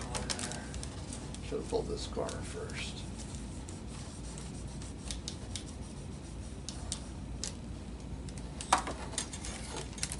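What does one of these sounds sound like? Stiff plastic clicks and taps as it is handled.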